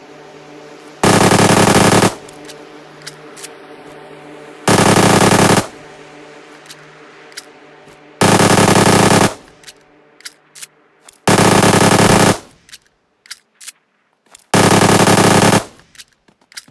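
A rifle fires single loud shots, each followed by a rolling echo.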